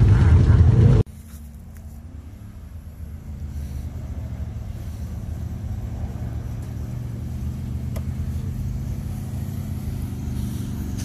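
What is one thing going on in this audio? An off-road vehicle's engine rumbles far off and slowly grows louder as it approaches.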